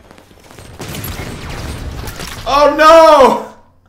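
A game explosion roars and rumbles.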